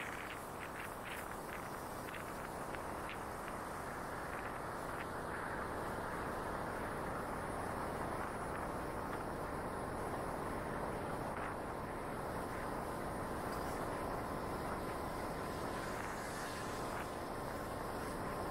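An electric scooter hums steadily as it rides along a street.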